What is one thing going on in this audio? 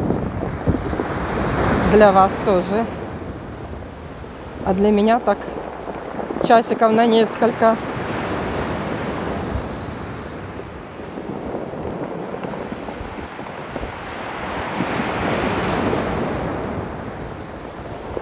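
Waves wash up and break over a pebble shore, surging and hissing as the water pulls back.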